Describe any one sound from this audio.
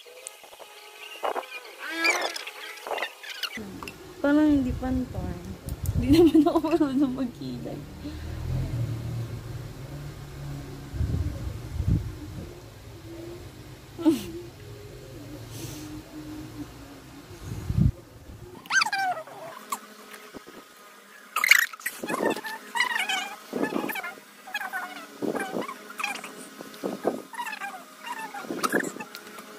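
Young women talk casually and laugh close by.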